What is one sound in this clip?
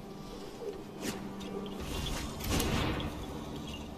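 A soft whooshing game effect sounds.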